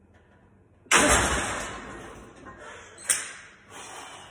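Metal plates clank on a barbell.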